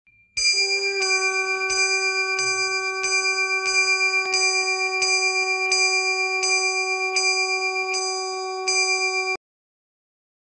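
A bell rings in steady, repeated strokes.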